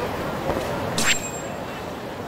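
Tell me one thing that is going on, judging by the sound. A soft chime sounds as a menu opens.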